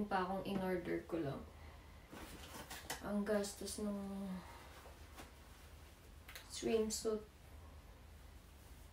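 Fabric rustles as a young woman handles a piece of clothing.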